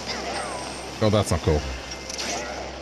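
A video game character cries out on being hit.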